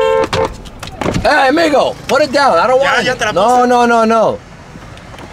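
A man outside the car calls out loudly.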